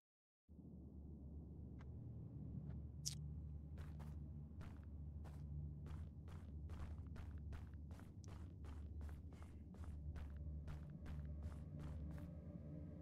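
Footsteps tap at a steady pace.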